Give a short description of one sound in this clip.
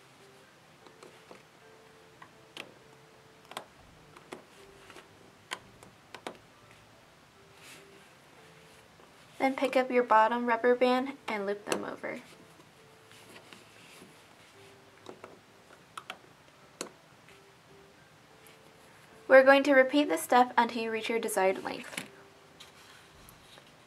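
A crochet hook clicks softly against a plastic loom as rubber bands are pulled.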